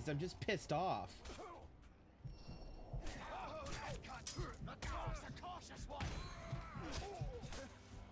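Blades clash and strike in a scuffle.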